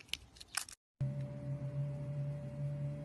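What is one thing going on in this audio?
A knife cuts into a soft block.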